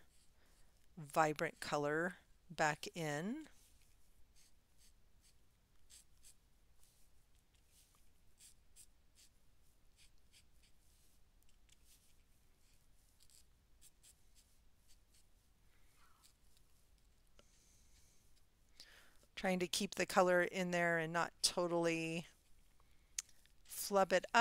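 An older woman talks calmly close to a microphone.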